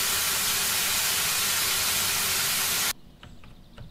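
A hose nozzle sprays a strong hissing jet of water, then stops abruptly.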